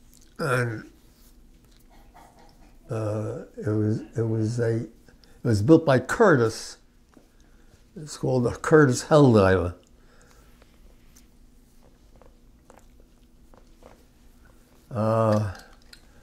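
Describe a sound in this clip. An elderly man speaks slowly and hoarsely, close by, in short bursts with long pauses.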